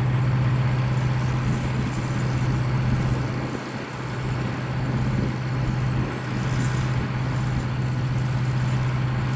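A dump truck bed lowers with a hydraulic whine.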